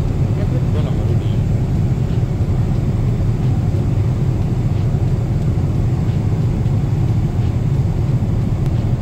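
A steady low roar of jet engines fills an aircraft cabin.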